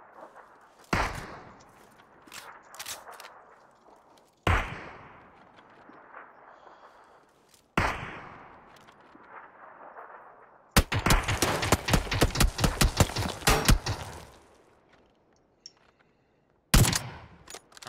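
Gunshots ring out and echo away.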